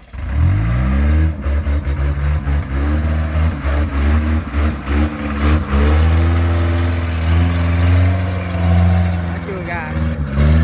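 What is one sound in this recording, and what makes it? A diesel engine of a tracked carrier revs under load as the carrier crawls through mud.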